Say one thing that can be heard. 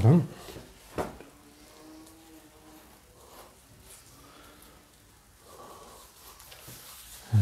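A man taps and presses on a wooden door frame.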